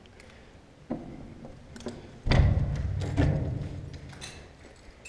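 A window rattles and thumps as it is pushed open.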